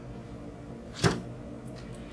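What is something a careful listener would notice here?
A card taps lightly against a table.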